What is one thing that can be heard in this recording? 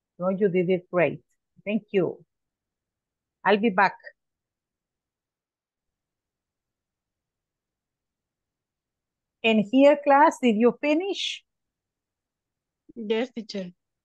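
A middle-aged woman speaks calmly over an online call, with long pauses.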